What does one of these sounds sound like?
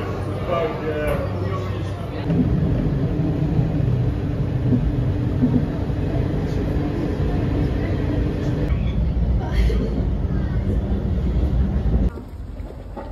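A train rumbles along its tracks.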